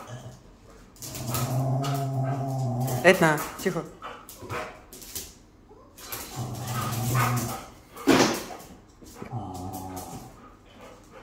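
Two dogs growl and snarl playfully, close by.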